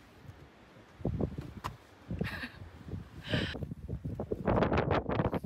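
Wind gusts across the microphone outdoors.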